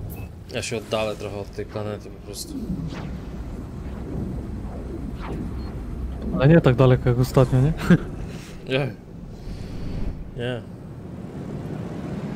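A spaceship engine rumbles low and steady.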